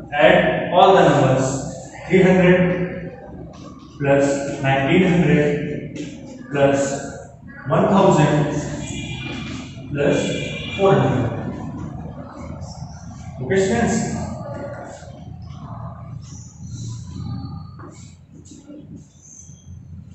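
A man explains loudly and clearly, close by.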